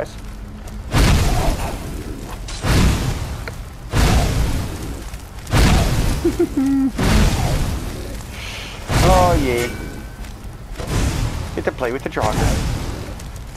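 Flames roar and whoosh in loud bursts.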